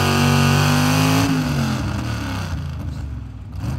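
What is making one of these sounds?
A pickup truck's diesel engine roars loudly under strain, then winds down.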